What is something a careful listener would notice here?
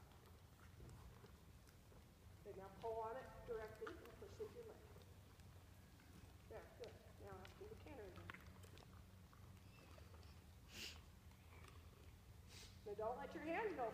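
A horse's hooves thud softly on loose dirt at a steady walk.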